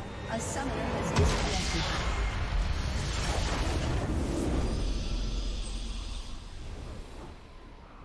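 A building explodes with a loud rumbling blast.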